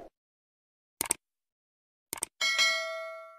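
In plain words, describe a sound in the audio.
A mouse clicks twice.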